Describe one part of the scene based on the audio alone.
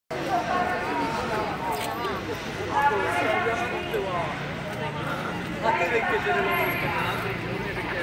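A crowd of teenagers chatters outdoors.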